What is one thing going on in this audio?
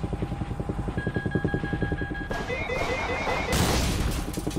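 A targeting tone beeps rapidly.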